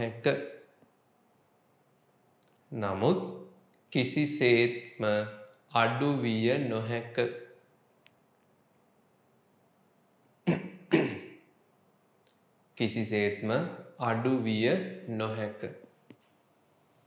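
A young man speaks calmly and clearly to a close microphone, with pauses.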